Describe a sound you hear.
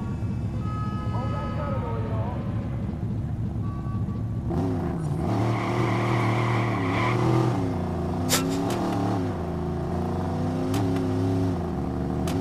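A car engine rumbles low, then revs hard and climbs through the gears.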